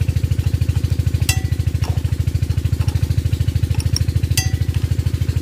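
A diesel engine runs nearby with a fast, steady thumping.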